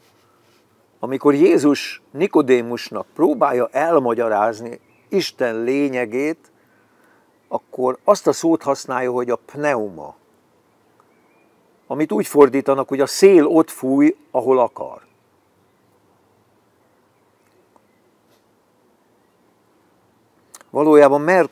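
An elderly man talks calmly and close by, in bursts with pauses.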